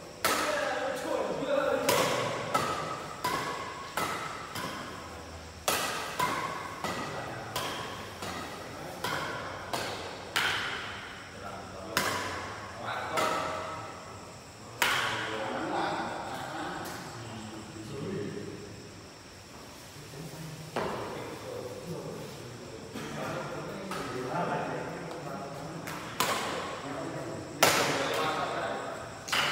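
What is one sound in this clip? Rackets strike a shuttlecock with sharp pops in an echoing hall.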